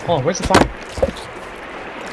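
An axe chops into wood.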